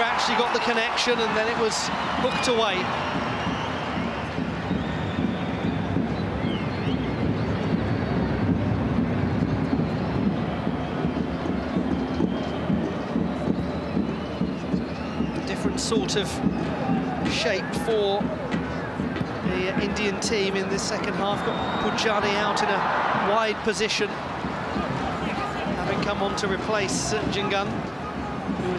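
A large stadium crowd roars and chants steadily throughout.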